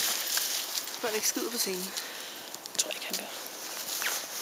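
Two small dogs growl and whine playfully up close.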